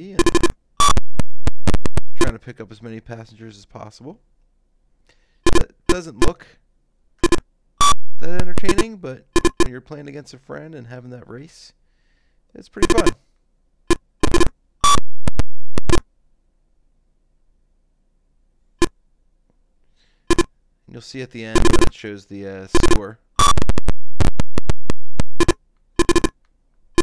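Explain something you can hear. Electronic beeps and blips from an old computer game sound in quick bursts.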